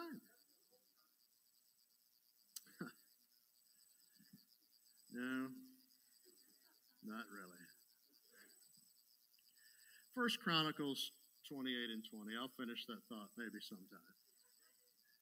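A middle-aged man speaks into a microphone calmly, with long pauses.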